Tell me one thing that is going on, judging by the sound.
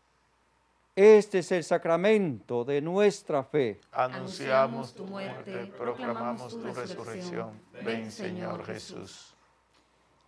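A man speaks and chants steadily through a microphone.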